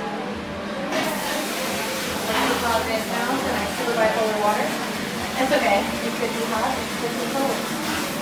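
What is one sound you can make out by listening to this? Water runs from a tap and splashes into a basin.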